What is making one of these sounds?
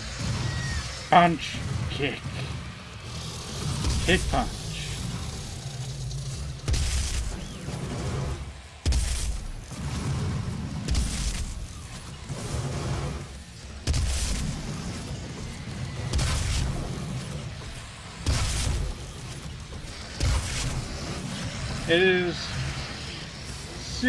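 Monsters growl and shriek.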